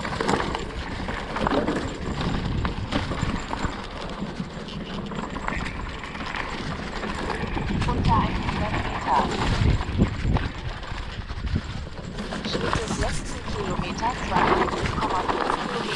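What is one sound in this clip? Knobby tyres of an electric mountain bike roll over a dirt forest trail.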